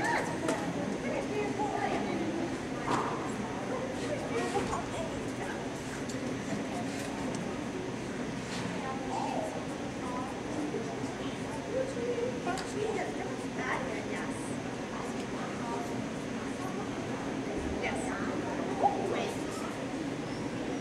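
A woman talks calmly in a large echoing hall.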